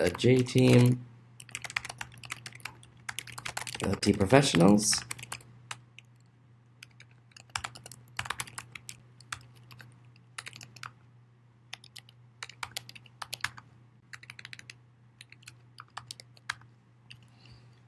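Keys clatter as someone types quickly on a keyboard.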